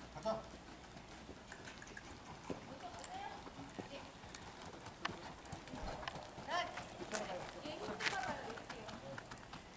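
Horses' hooves thud softly on sandy ground.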